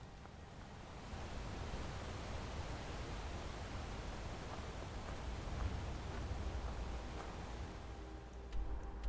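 Footsteps crunch along a gravel path.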